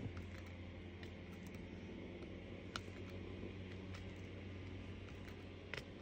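Tiny beads click softly as a bead tool picks them up from a plastic tray.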